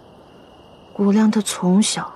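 A young woman speaks sadly and quietly, close by.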